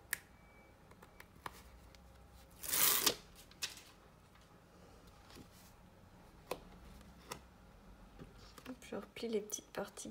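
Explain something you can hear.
Stiff paper rustles and flaps as it is handled.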